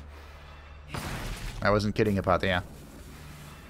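Sword blows land in a fight.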